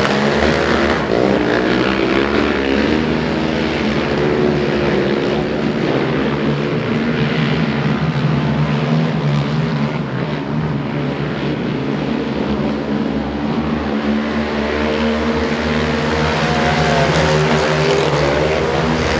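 Several quad bike engines roar and rev loudly, rising and falling in pitch.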